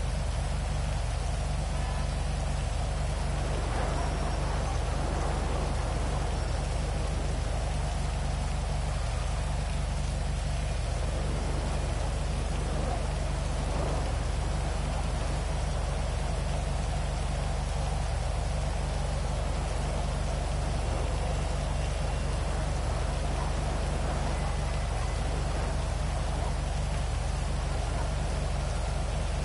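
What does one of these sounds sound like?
Rain patters steadily.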